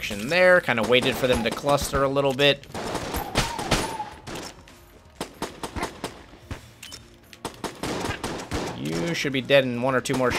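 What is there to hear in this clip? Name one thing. Guns fire in quick bursts of sharp shots.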